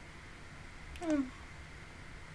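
A young woman hums softly, close to a microphone.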